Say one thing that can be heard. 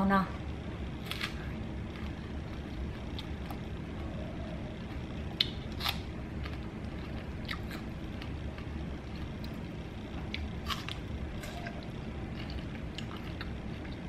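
A woman bites and chews juicy strawberries with wet crunching sounds.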